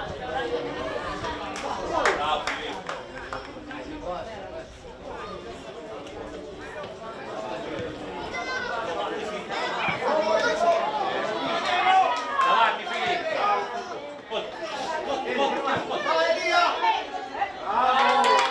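A football thuds as players kick it on an open field.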